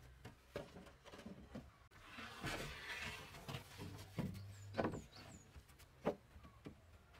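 Wooden planks knock and clatter onto wooden floor joists.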